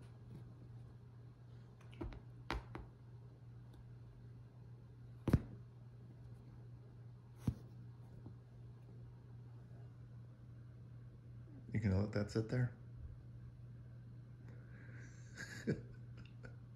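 A cloth toy swishes and taps against a soft couch.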